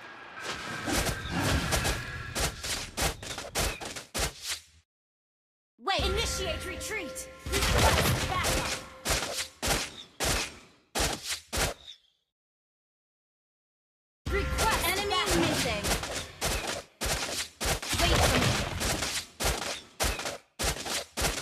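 Video game hits land with sharp thuds.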